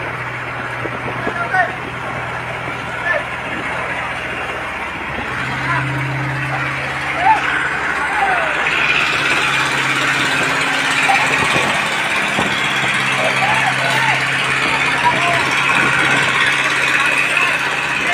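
Men shout to each other nearby.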